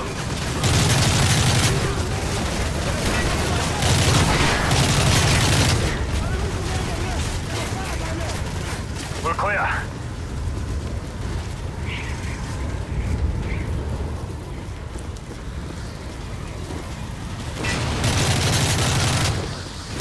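A rifle fires in rapid bursts, close by.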